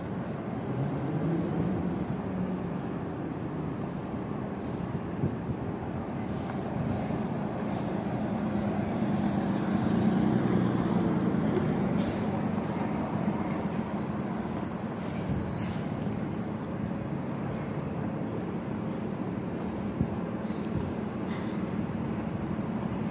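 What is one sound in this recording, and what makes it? A person in a padded costume rolls and scrapes over concrete pavement.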